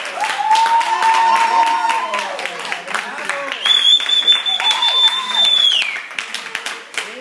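A small crowd claps and cheers nearby.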